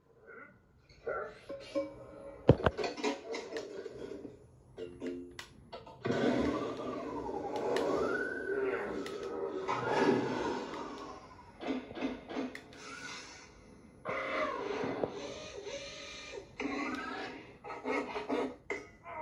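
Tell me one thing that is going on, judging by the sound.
Cartoon sound effects play loudly through a television loudspeaker.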